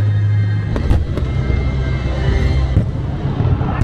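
Loud music booms from loudspeakers.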